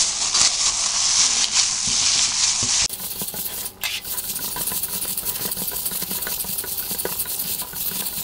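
Hands squish and knead raw ground meat.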